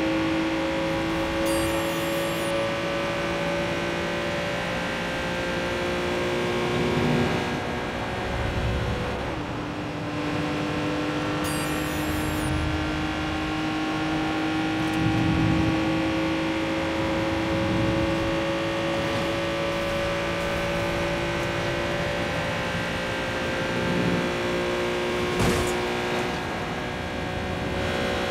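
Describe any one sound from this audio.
Tyres roll with a steady roar on the road.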